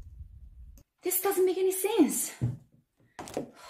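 A young woman exclaims in exasperation.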